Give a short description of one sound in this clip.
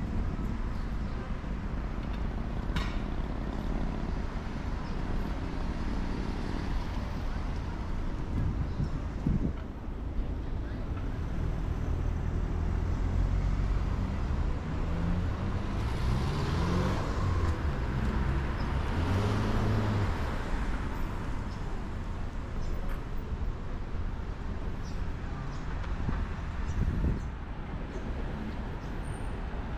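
Car engines hum and tyres roll along a street.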